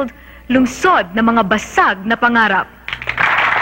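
A young woman announces with animation through a microphone.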